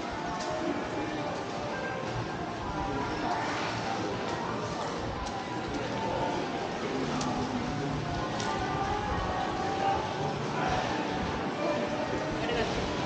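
Men and women chat quietly in the distance in a large echoing arcade.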